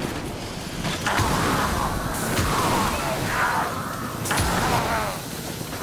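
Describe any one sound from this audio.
Explosions burst with loud crackling blasts.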